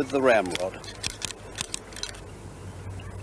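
A gun's metal mechanism clicks.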